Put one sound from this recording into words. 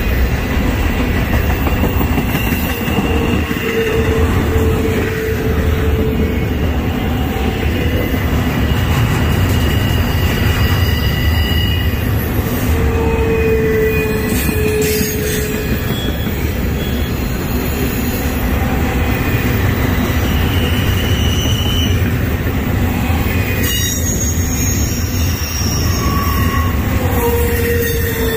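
A freight train rumbles past close by, loud and steady.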